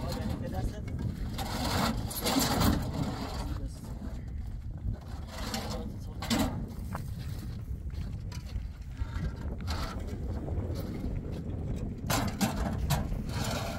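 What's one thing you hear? Concrete blocks knock against a metal truck bed as they are unloaded.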